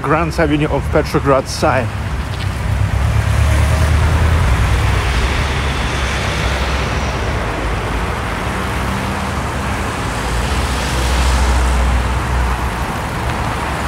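Cars drive past on a city street.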